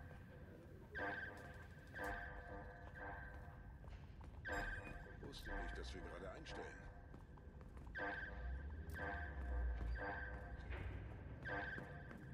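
Footsteps thud at a steady walking pace on a wooden floor.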